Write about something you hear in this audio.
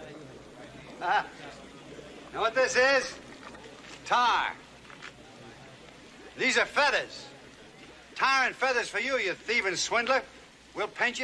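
An older man speaks loudly and with animation close by.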